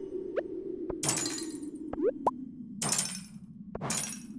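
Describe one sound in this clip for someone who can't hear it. A pickaxe strikes rocks, which crack and break apart.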